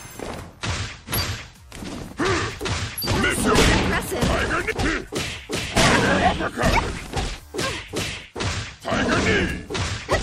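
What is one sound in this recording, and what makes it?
An energy blast whooshes.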